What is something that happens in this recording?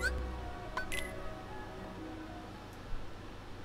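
A short electronic menu chime rings out.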